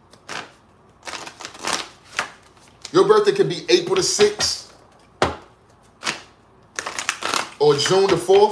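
Cards shuffle and flutter in hands.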